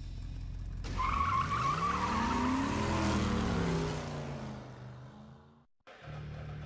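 Car engines roar and rev past.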